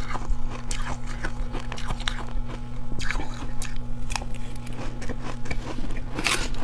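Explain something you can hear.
A metal spoon scrapes against a metal bowl.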